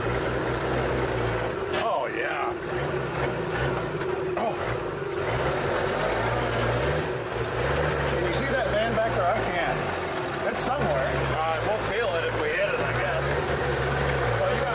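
Middle-aged men talk casually up close.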